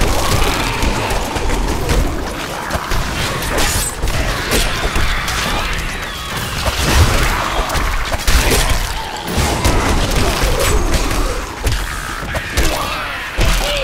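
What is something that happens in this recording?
Weapons clash and magic blasts crackle in a fast fight.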